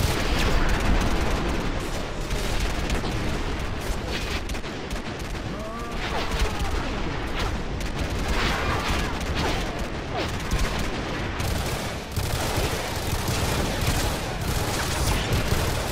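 Rapid gunfire crackles and booms throughout.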